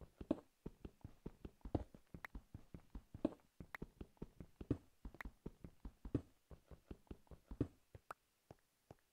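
A pickaxe chips rapidly at stone with quick knocks.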